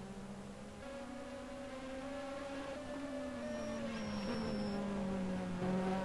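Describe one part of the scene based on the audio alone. A race car engine roars at high revs, shifting gears as the car speeds past.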